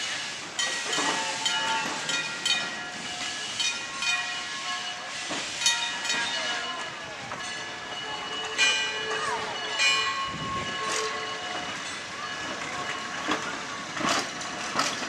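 Wheels clack over rail joints.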